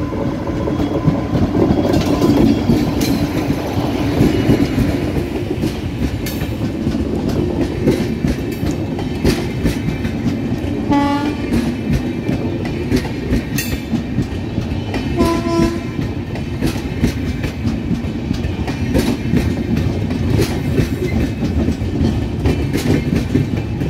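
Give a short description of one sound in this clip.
Train wheels clatter and click over the rail joints.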